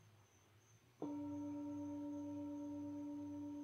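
A singing bowl is struck and rings out with a bright, steady tone.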